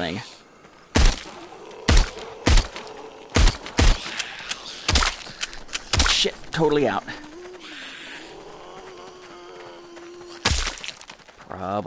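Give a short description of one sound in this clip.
Gunshots fire in quick bursts, ringing loudly.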